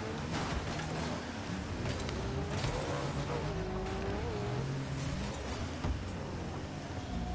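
A game car's engine hums and revs.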